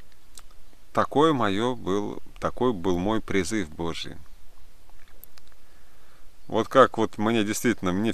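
A young man speaks calmly and close up, with pauses.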